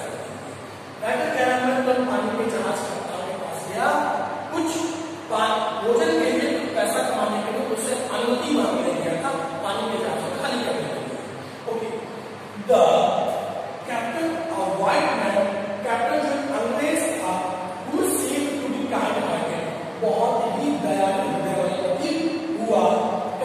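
A man speaks steadily and with animation close by.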